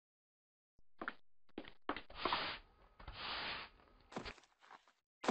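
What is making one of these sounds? Quick footsteps patter across a hard floor.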